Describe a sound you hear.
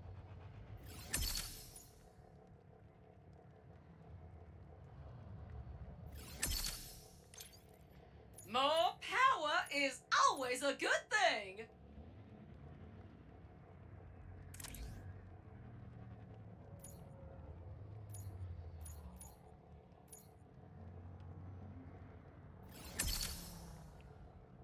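Soft electronic menu blips and whooshes sound now and then.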